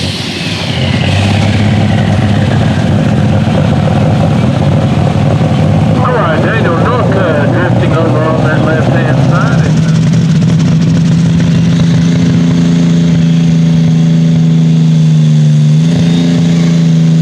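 A tractor engine rumbles with a steady, deep roar.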